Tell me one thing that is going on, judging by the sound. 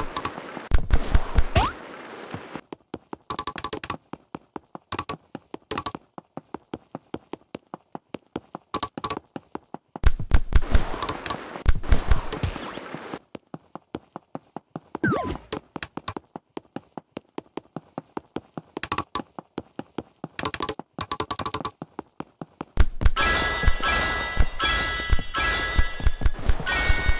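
Quick cartoon pops click in rapid succession.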